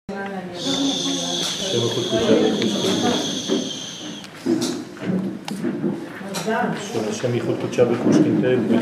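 Several people talk over one another nearby.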